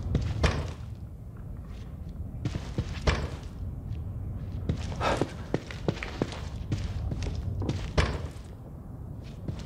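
A wooden door is pushed open with a knock.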